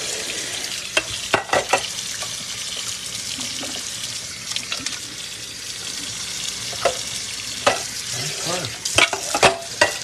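A metal pot clanks against the sink.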